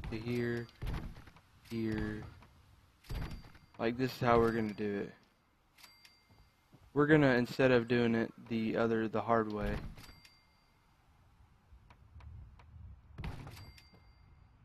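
A short electronic chime sounds each time a building piece snaps into place.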